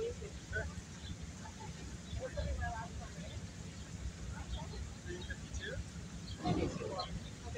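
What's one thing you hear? A woman speaks into a microphone outdoors.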